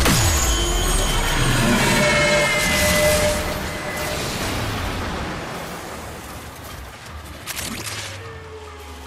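Energy weapons fire with loud electric blasts and zaps.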